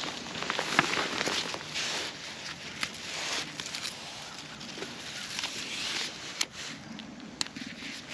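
Leaves and stems rustle as tomatoes are picked by hand.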